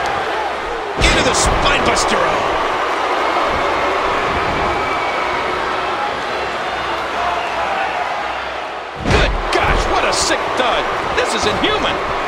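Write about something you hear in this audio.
Heavy thuds ring out as wrestlers slam onto the ring mat.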